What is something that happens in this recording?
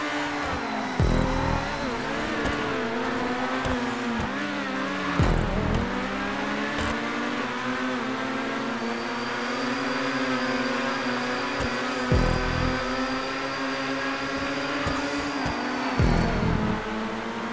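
A racing car's exhaust pops and bangs as it shifts gear.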